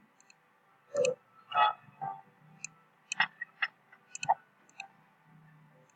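Short bright game chimes and pops sound in quick succession.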